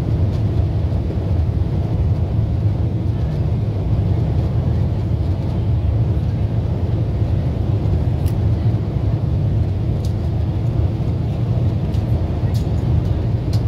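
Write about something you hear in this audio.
An aircraft cabin hums with a steady, deep engine drone.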